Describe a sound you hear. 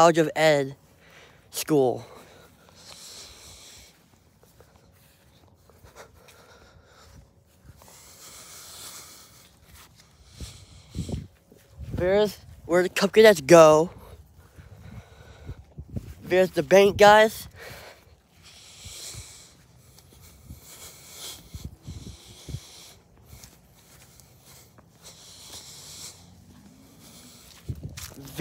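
Fabric rustles against the microphone.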